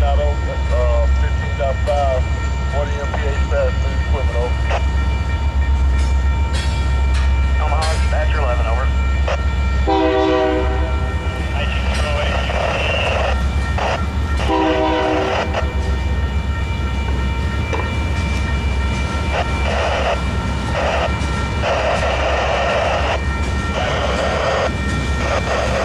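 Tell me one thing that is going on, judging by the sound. A railway crossing bell rings continuously.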